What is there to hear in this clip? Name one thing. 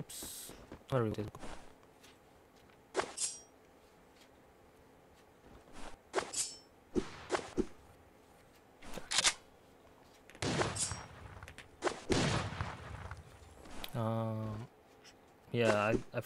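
A knife swishes through the air.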